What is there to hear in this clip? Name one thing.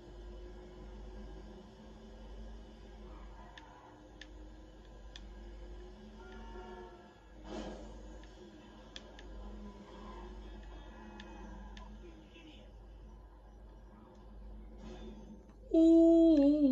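A truck engine hums steadily through a television's speakers.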